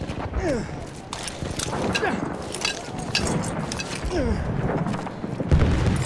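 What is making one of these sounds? Gunfire crackles in sharp bursts.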